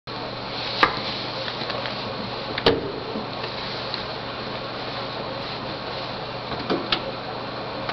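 A wooden bench knocks and thumps as a man shifts on it.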